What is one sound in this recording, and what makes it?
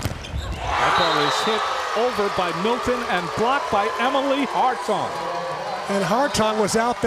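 A crowd erupts in loud cheering.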